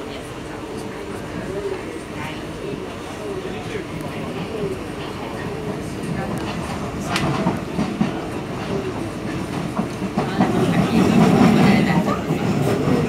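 A train rumbles steadily along the tracks, growing louder toward the end.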